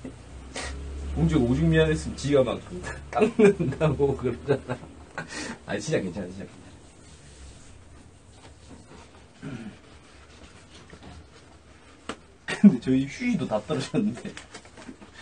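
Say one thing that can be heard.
A young man talks casually close to a microphone.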